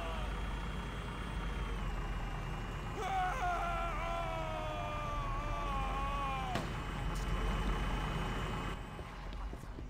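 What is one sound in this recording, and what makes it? A vehicle engine rumbles and whines as it drives.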